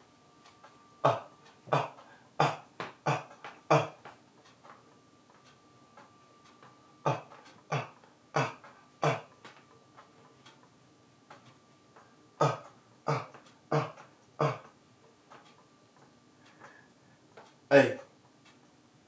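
A man makes short, sharp vocal bursts in a rhythm into a close microphone.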